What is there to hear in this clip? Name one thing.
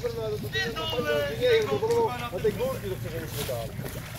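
A man talks loudly nearby outdoors.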